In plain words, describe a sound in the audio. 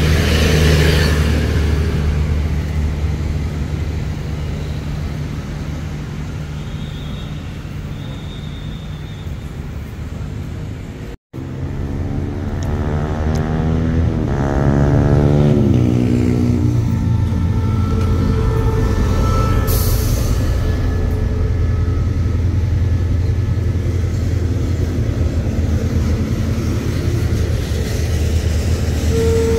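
A train engine rumbles steadily nearby.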